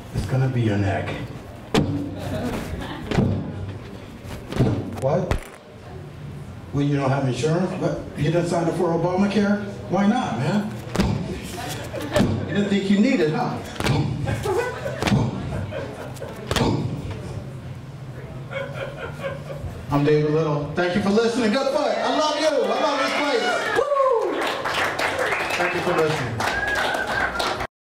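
A man speaks with animation into a microphone over loudspeakers in a reverberant room.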